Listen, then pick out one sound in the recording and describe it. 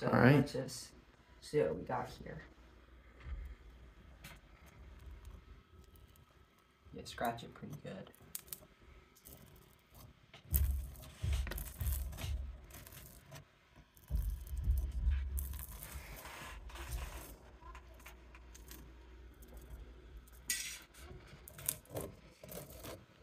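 A fork scrapes and crackles through wax honeycomb.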